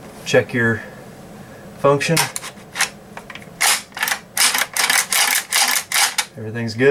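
Metal parts of a shotgun click and rattle as it is handled.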